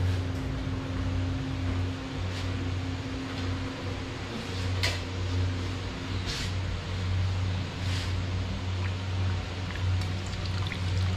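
A metal ladle scrapes and clinks against a cooking pot.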